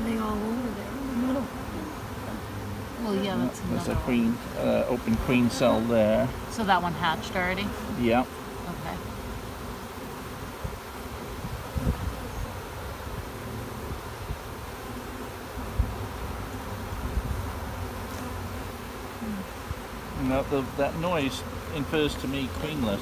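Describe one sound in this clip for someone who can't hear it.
An adult man talks calmly close by.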